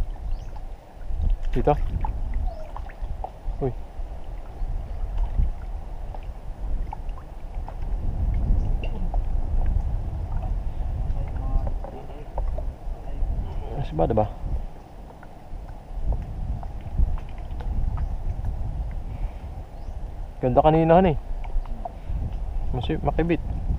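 Wind buffets outdoors over open water.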